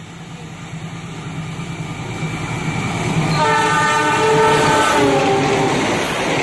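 A diesel locomotive approaches with a deep rumbling engine.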